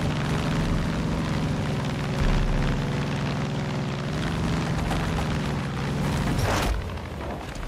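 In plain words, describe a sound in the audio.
A single-engine propeller plane drones as it flies.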